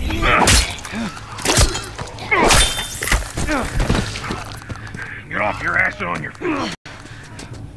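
A man grunts and speaks roughly during a struggle.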